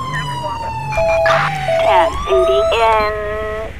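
Short electronic beeps sound three times.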